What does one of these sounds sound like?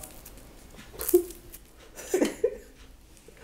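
A woman munches on a crunchy snack nearby.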